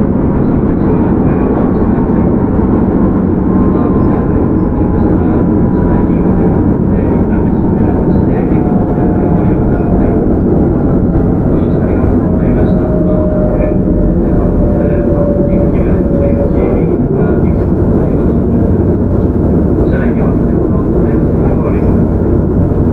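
A train rumbles heavily along the tracks.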